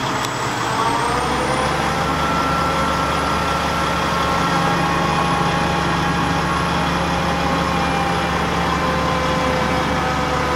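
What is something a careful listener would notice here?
A crane engine hums steadily.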